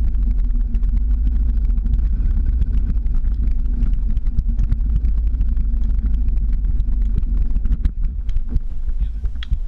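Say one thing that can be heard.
Wind rumbles past a moving microphone.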